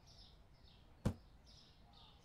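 An object is set down with a short knock.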